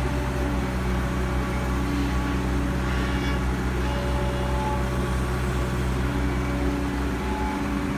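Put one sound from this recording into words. A diesel excavator engine hums and rumbles steadily close by.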